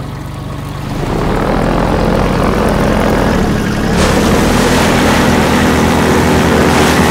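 A boat engine roars steadily while moving over water.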